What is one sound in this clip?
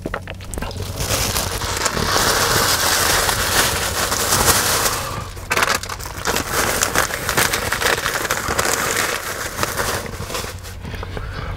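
A paper wrapper rustles and crinkles.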